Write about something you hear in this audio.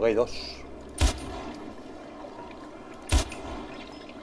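A pistol fires sharp single shots.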